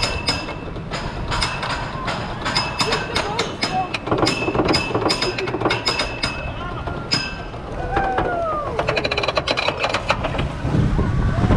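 A roller coaster's chain lift clicks rapidly as the cars climb.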